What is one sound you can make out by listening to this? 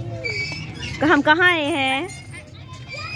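A young girl laughs and squeals close by.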